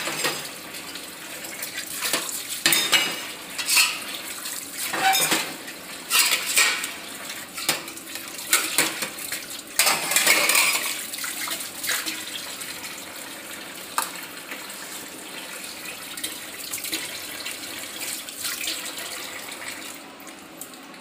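Water runs from a tap into a metal sink.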